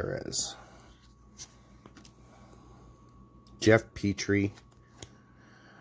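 Trading cards rustle and slide against each other in a hand.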